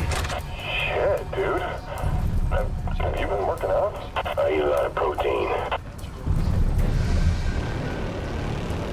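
A fire roars steadily.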